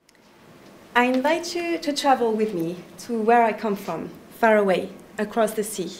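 A young woman talks with animation into a microphone.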